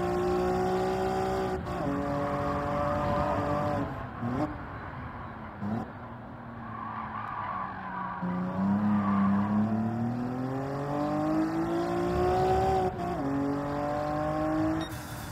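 A car engine revs high, dropping in pitch with each gear change and rising again as it speeds up.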